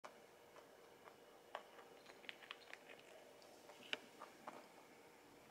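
A rabbit crunches dry pellets with quick, soft clicks up close.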